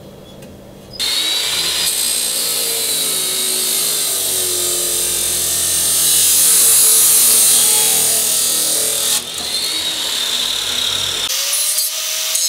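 A power cutoff saw whines loudly as it grinds through metal.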